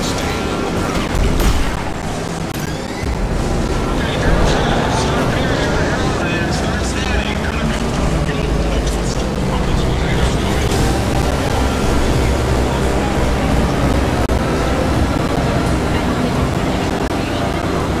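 Racing cars scrape and crash against walls.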